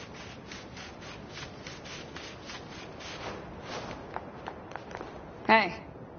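Quick footsteps run over sand.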